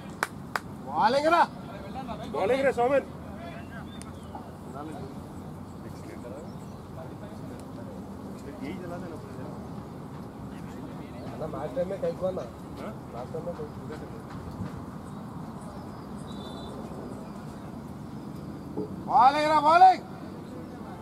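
Young men shout loudly across an open field.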